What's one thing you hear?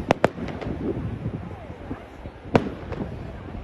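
Fireworks explode with sharp, loud bangs.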